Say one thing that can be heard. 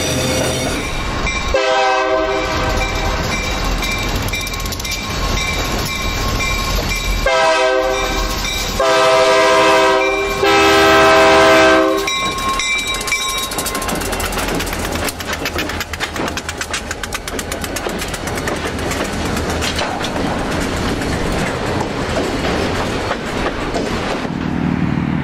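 A diesel locomotive engine rumbles loudly as it passes close by.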